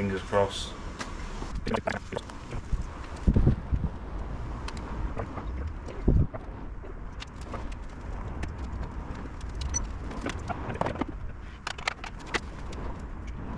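Metal tools clink and knock against a car body.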